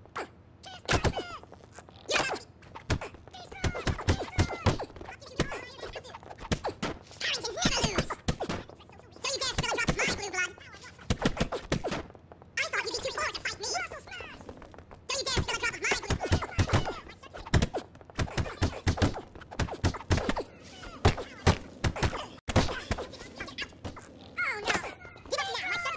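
Punches land with sharp thuds again and again.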